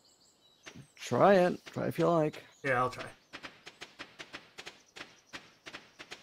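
Footsteps tap quickly on a dirt path.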